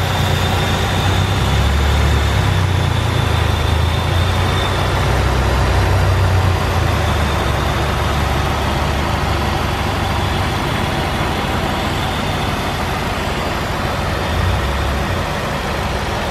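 A car engine idles steadily up close.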